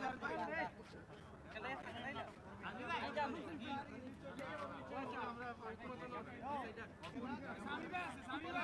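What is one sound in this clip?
A crowd of young men chatter and shout outdoors.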